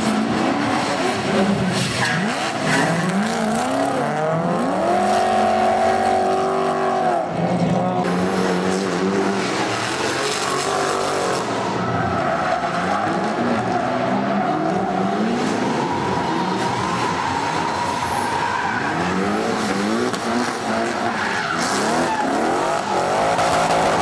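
Tyres screech as cars slide sideways.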